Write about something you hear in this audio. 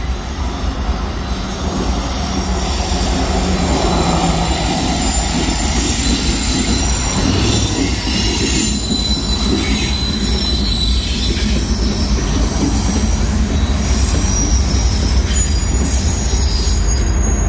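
A freight train's diesel locomotive rumbles past at close range.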